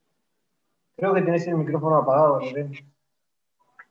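A middle-aged man speaks briefly over an online call.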